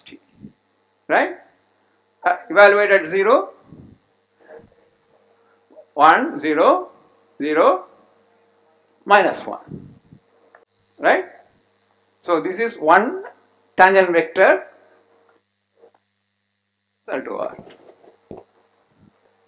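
An elderly man lectures calmly through a microphone.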